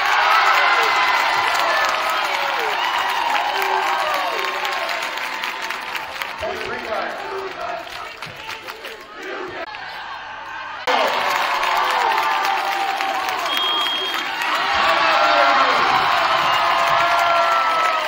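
Young women players call out to each other on the court.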